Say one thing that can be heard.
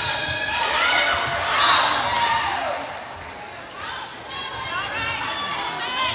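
A crowd of spectators cheers and claps.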